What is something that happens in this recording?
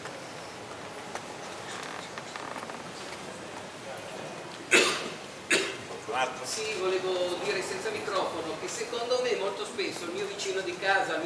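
A crowd murmurs quietly.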